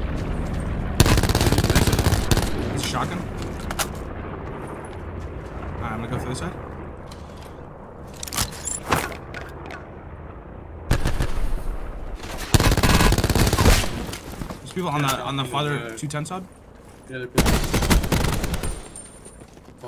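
An automatic rifle fires in bursts in a video game.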